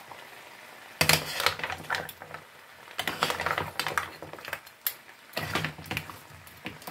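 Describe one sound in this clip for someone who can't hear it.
A metal spoon scrapes and clatters against a pan.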